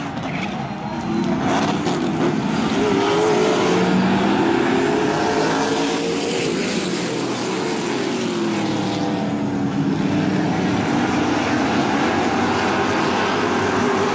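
Many race car engines roar loudly, rising and falling in pitch as the cars pass.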